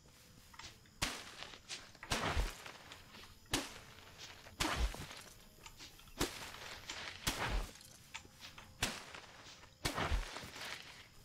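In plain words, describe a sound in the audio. Sharp blows land in quick succession as a weapon strikes a creature.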